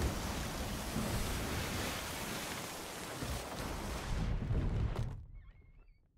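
Ocean waves rush and splash loudly against a wooden ship.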